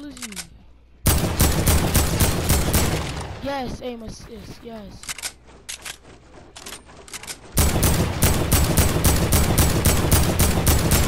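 Rapid gunfire rattles loudly in a video game.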